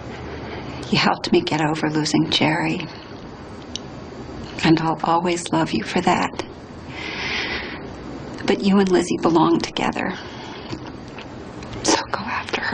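A woman speaks emotionally, close by.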